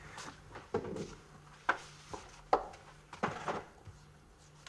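A woman sets down objects with light knocks and clatters.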